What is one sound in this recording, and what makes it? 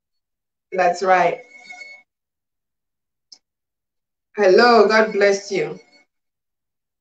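A woman speaks calmly and closely into a microphone, with pauses.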